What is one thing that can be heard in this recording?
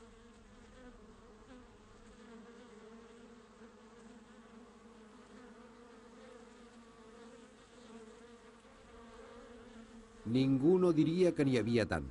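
Bees buzz steadily in a dense swarm.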